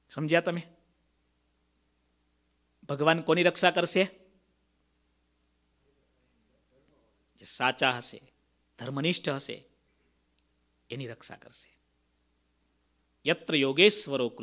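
A man speaks calmly and warmly into a microphone, in short phrases with pauses.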